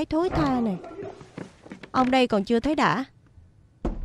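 A woman speaks sharply and angrily, close by.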